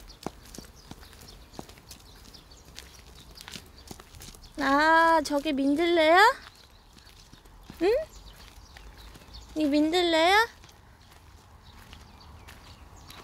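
A small child's footsteps patter on a dirt path.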